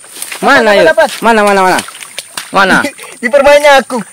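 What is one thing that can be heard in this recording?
Hands splash and scoop in shallow muddy water.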